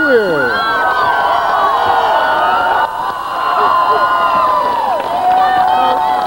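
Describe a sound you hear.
A large crowd cheers and screams outdoors.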